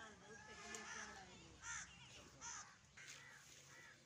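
A calf munches on hay.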